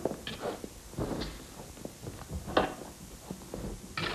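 A wooden wardrobe door swings open.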